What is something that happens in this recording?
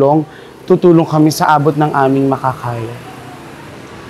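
A young woman speaks calmly and closely into a microphone.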